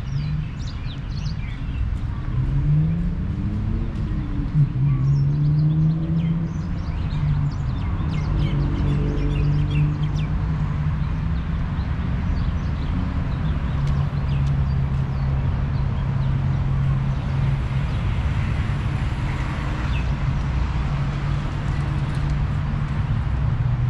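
Wind blows outdoors and rustles tree leaves.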